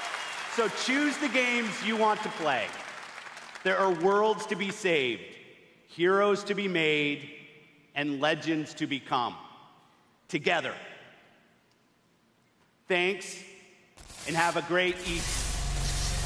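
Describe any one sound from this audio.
A man speaks with animation over loudspeakers in a large echoing hall.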